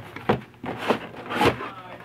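Bubble wrap crinkles as it is pulled out.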